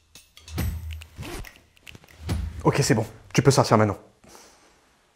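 A young man speaks close by, with animation.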